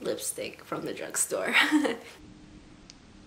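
A young woman speaks cheerfully and close up.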